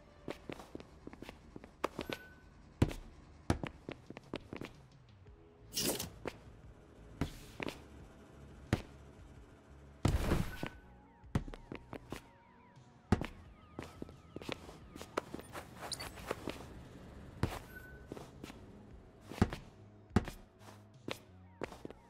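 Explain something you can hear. Quick footsteps patter on a hard surface.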